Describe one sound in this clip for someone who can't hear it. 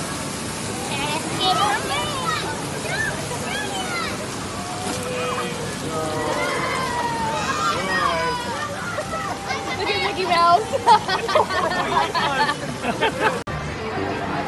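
Young riders scream and shout excitedly nearby.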